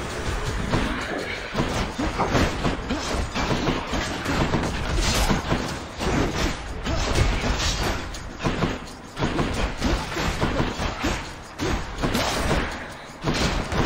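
Weapon strikes and hits clash in a fast game fight.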